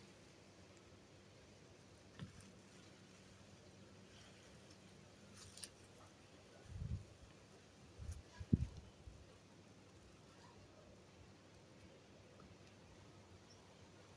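Twine rustles softly against coarse fibre as it is pulled tight.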